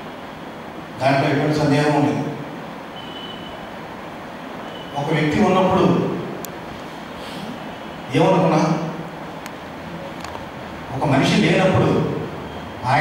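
A man speaks with emphasis into a microphone, heard through loudspeakers in a reverberant hall, in short bursts with pauses.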